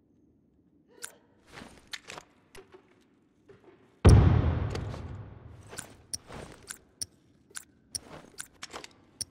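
Quick soft clicks tick in a row.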